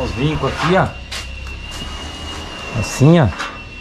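A hand knocks and scrapes against a metal panel.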